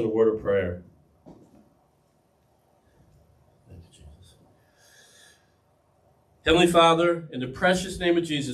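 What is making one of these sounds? A middle-aged man speaks calmly into a headset microphone, pausing between phrases.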